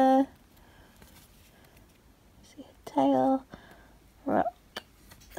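Hands handle a small plastic figure, with soft clicks and taps.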